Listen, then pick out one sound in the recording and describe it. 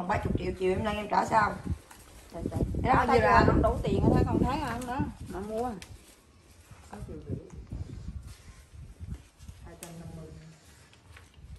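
An older woman talks with animation close by.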